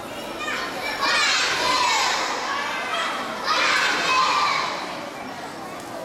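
Young children sing loudly together.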